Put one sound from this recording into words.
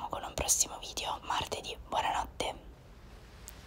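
A young woman speaks brightly and close by.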